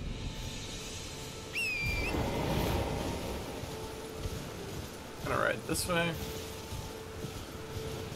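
Footsteps run through tall grass.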